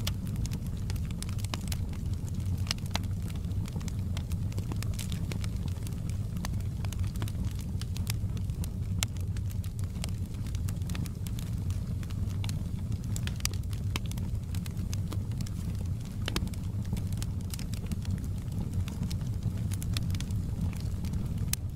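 A wood fire roars with a low, steady rumble.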